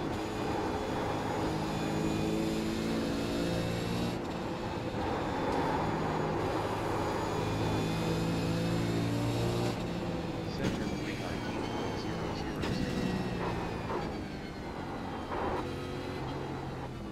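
A race car engine roars and revs up and down through the gears.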